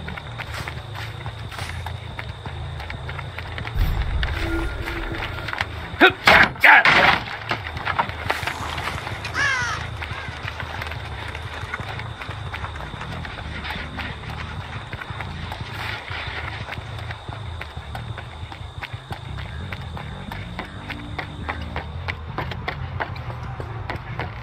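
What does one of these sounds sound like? Footsteps run quickly through grass and over dirt.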